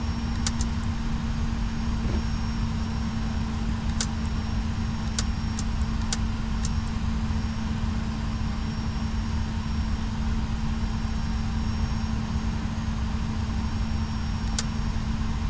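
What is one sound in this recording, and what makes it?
A jet engine hums and rumbles steadily.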